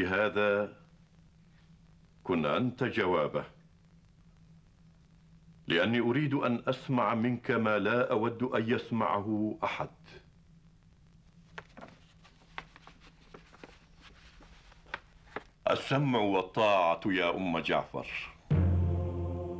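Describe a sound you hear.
An elderly man reads out solemnly in a deep voice, pausing between phrases.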